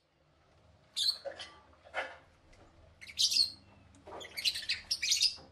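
Lovebirds chirp and screech loudly close by.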